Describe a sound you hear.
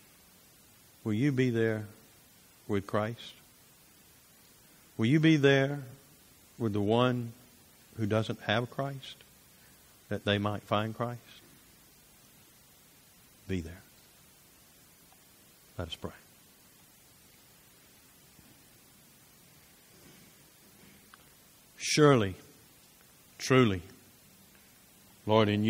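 A middle-aged man speaks in short phrases with long pauses, heard through a microphone in a large room.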